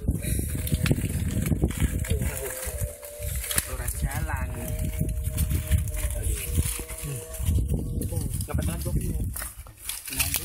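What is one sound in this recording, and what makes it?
Young men talk casually close by.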